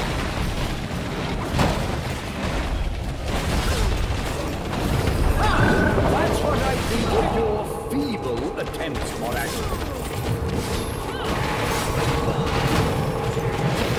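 Magic blasts and explosions crackle and boom in quick succession.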